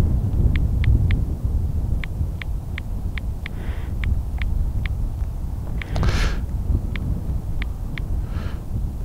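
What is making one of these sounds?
A phone beeps with short, high tones as its buttons are pressed.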